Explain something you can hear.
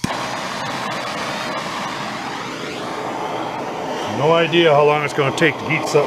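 A gas torch hisses and roars steadily.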